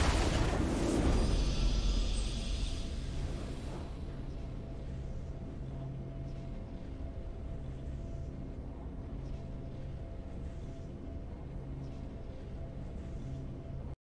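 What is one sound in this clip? A triumphant fanfare swells and then settles into soft, steady music.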